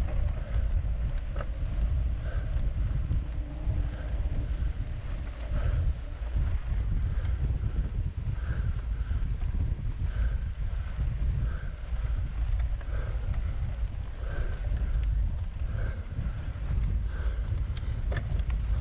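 Bicycle tyres crunch over a sandy dirt road.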